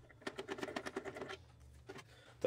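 A plastic cover clicks and rattles as it is handled.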